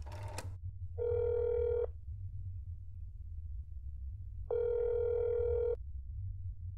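A phone ringing tone sounds twice in steady beeps.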